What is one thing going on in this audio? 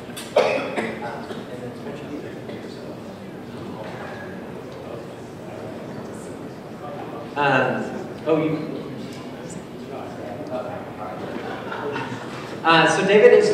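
A young man speaks from a little farther off.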